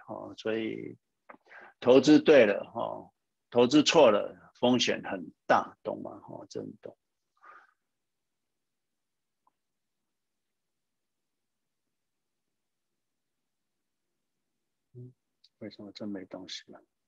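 A man speaks calmly into a microphone over an online call.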